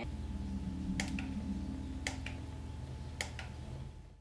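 Buttons on a game controller click a few times.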